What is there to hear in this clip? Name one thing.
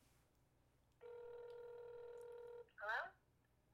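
A phone plays a steady tone through its speaker.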